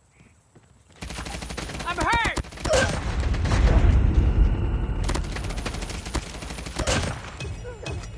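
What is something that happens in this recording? Automatic rifle fire rattles in a video game.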